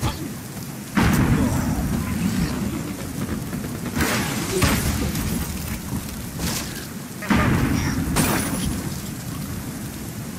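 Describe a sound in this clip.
Blocks crash and tumble with loud impacts.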